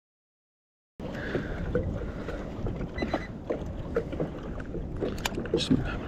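Small waves slap and splash against a kayak.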